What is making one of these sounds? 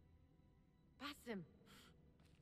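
A woman calls out sharply.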